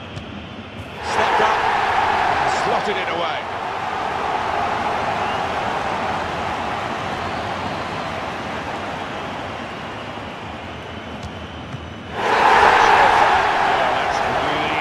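A stadium crowd bursts into loud cheering.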